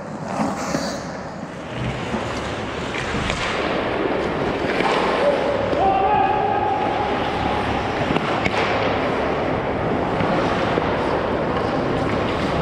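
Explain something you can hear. Hockey sticks clack against the ice and a puck.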